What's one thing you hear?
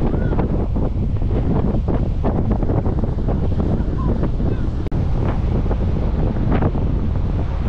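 Strong wind buffets and roars outdoors.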